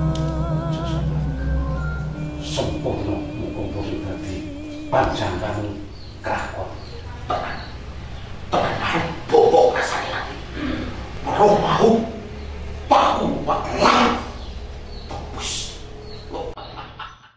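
An older man speaks in reply close by.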